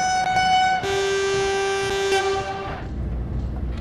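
A passing train sounds its horn loudly.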